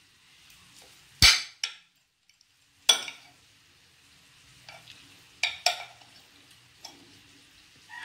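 Metal cutlery clinks and scrapes sharply against a plate.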